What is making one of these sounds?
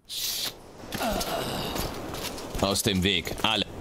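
A man speaks gruffly and threateningly, close by.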